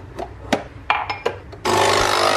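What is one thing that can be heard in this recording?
A ceramic cup clinks against a hard surface.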